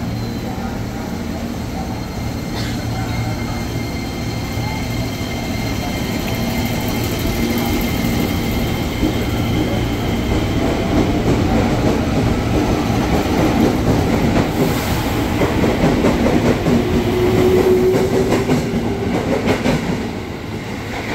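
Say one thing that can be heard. A train pulls out of a station, rumbling and speeding up.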